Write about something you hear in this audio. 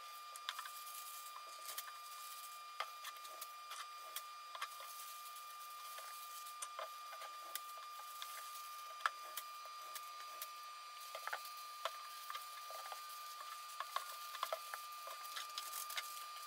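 Tissue paper rustles and crinkles as it is wrapped around a bowl.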